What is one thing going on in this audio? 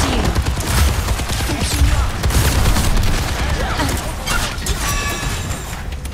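Rapid energy gunfire blasts in bursts.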